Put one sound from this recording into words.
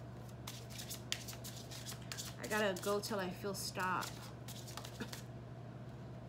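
Cards shuffle and rustle in a woman's hands.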